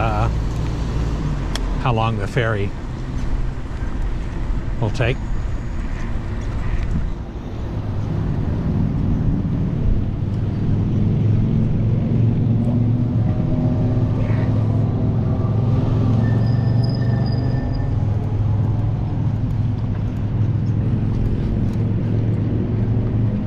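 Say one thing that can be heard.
Cars drive past on a nearby road.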